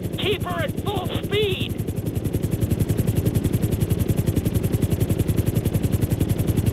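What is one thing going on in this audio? A helicopter's rotor thumps steadily and fast.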